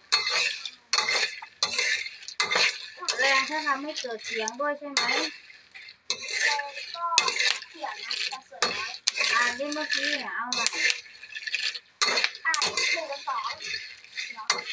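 A metal spatula scrapes and stirs seeds rattling in a pan.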